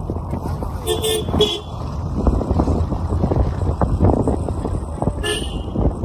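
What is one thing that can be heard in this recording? A car drives along a paved road, heard from inside.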